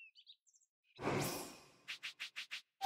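A menu opens with a whooshing sound.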